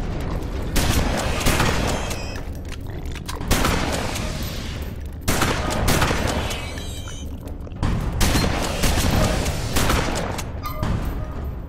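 Guns fire in loud, repeated bursts with echoing blasts.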